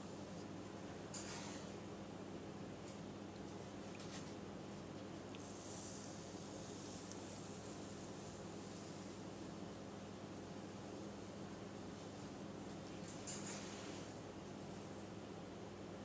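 A metal spoon scrapes and clinks against a ceramic jar.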